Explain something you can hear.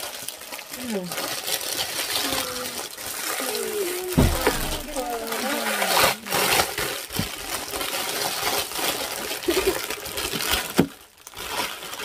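Plastic wrapping crinkles and rustles loudly.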